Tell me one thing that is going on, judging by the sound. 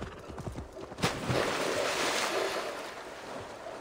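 A horse splashes into water.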